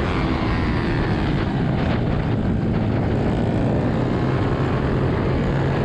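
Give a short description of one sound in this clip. Small motorbike engines buzz loudly and close by.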